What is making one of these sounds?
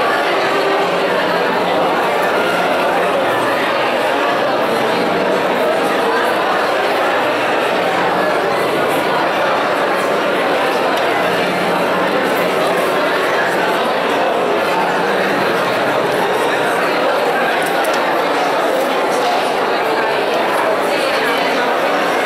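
A crowd of men and women chatters all around, close by, in an echoing hall.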